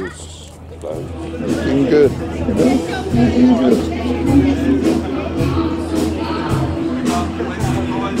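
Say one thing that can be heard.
Men talk nearby outdoors.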